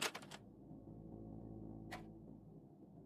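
A video tape player clicks as a cassette is pushed in.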